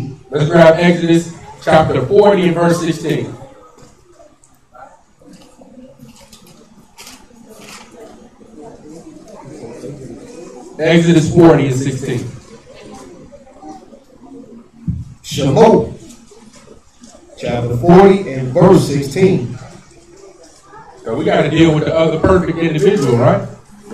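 A young man reads aloud into a microphone, heard through a loudspeaker.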